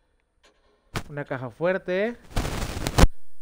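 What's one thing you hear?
A young man speaks loudly and with animation close to a microphone.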